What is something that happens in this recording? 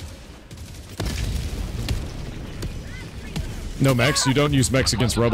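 Gunfire and explosions crack and boom in a game.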